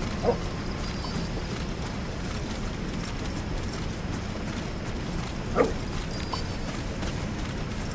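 A soldier's footsteps rustle through tall grass.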